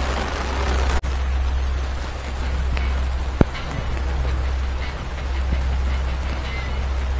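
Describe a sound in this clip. Rain patters on an umbrella overhead.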